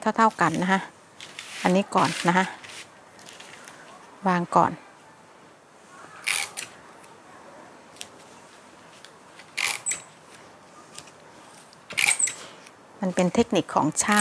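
Paper rustles and slides as hands smooth it flat.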